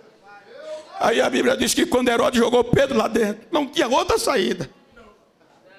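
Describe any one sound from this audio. A man preaches loudly and with animation through a microphone in a large hall.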